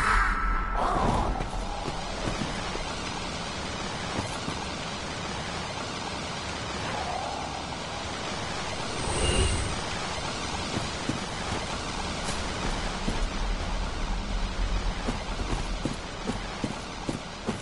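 Footsteps crunch over leaves and ground.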